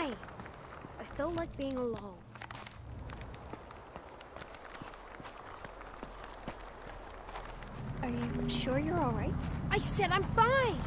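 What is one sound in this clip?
Footsteps crunch slowly on a gravel path.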